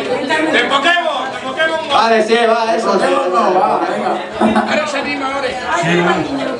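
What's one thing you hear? A young man raps fast into a microphone through loudspeakers, echoing in a room.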